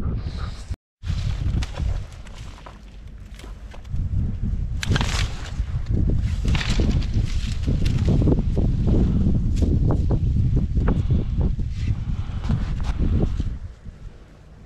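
Dry reeds rustle and crackle close by.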